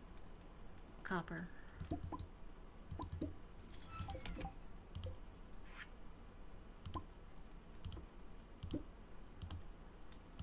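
Menu clicks tick and pop.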